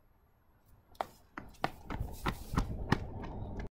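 Footsteps run on asphalt close by.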